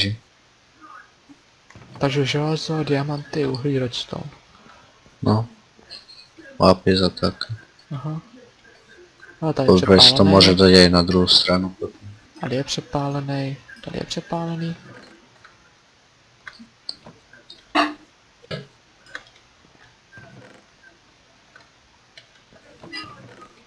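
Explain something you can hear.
A wooden chest creaks open and thumps shut.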